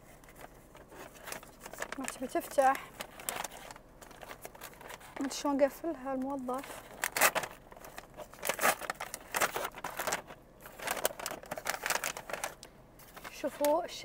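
Paper wrapping crinkles and rustles.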